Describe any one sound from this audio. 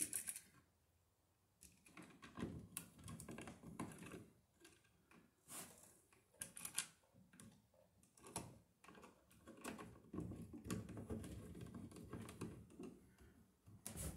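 A screwdriver clicks and scrapes against an electrical box.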